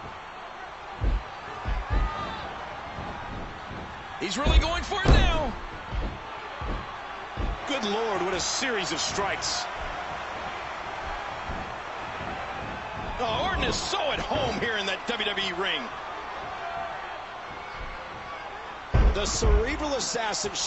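Heavy body blows thud on a wrestling ring mat.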